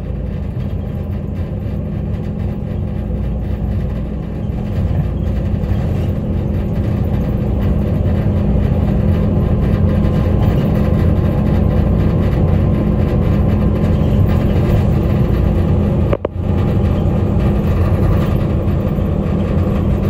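A vehicle rumbles steadily as it travels along a road, heard from inside.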